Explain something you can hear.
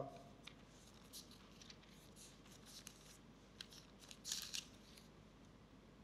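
Paper pages rustle as a man turns them.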